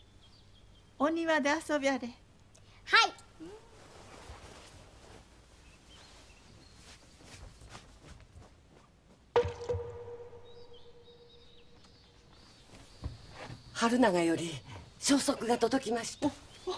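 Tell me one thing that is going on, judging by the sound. A young woman speaks softly and gently.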